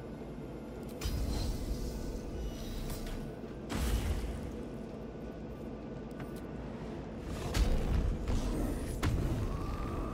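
Game combat effects thud and boom in bursts.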